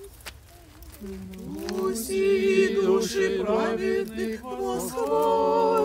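A group of men and women sing a hymn together.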